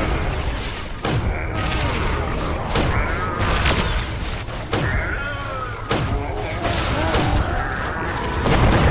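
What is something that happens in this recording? A toy blaster fires with sharp bursts.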